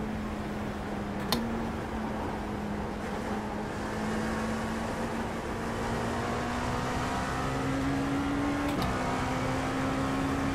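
A racing car engine hums steadily and rises in pitch as the car speeds up.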